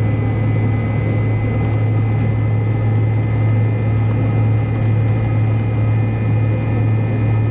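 Jet engines hum steadily and loudly from inside an aircraft cabin as it taxis.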